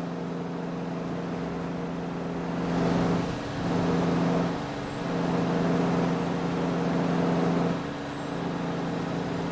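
A heavy truck engine drones steadily, dipping and rising as gears change.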